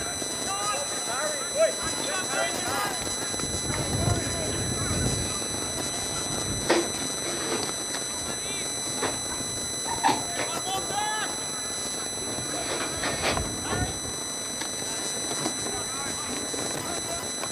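Players call out to each other across an open field in the distance.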